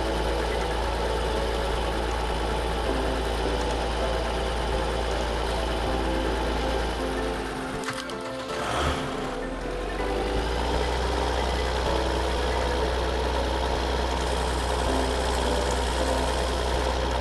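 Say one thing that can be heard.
A tractor engine drones steadily, dipping briefly before picking up again.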